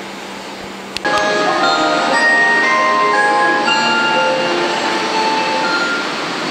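An electric train's motors whine in shifting tones while riding.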